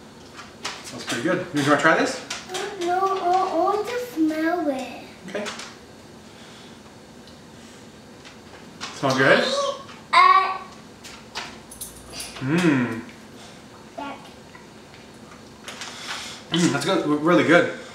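A man talks calmly to a child close by.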